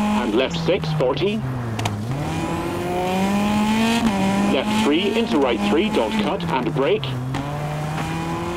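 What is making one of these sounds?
A rally car engine roars and shifts through gears.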